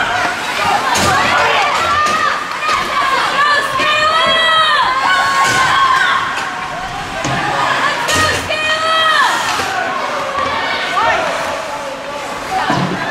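Spectators shout and cheer loudly nearby in an echoing rink.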